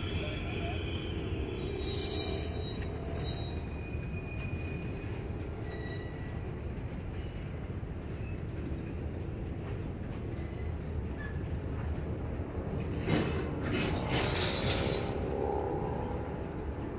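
A freight train rumbles steadily past at a distance.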